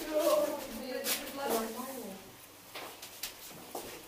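Cloth rustles softly as hands smooth it flat.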